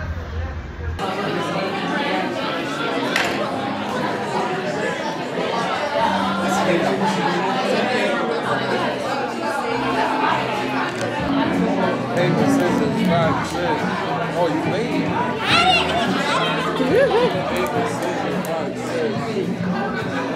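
A crowd of people chatters in a busy indoor room.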